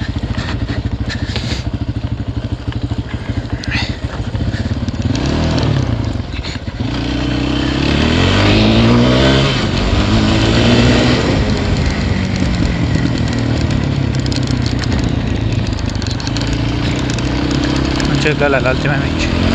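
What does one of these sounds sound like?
A quad bike engine drones up close and revs up and down.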